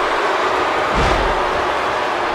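A heavy thud sounds as a wrestler hits the mat.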